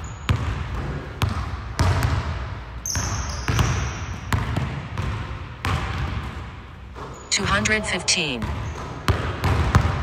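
A basketball bounces on a wooden court in a large echoing gym.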